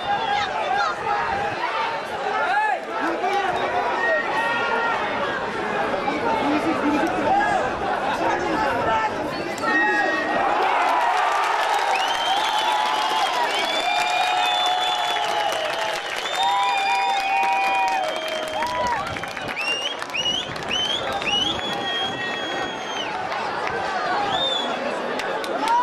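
A large crowd roars and chants loudly in an open stadium.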